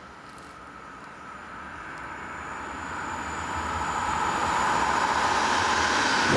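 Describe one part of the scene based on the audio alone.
A train approaches along the tracks, its rumble and rail noise growing louder.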